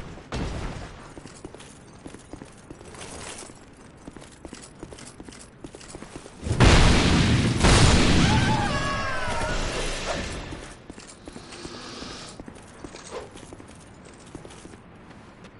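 Footsteps crunch over snow.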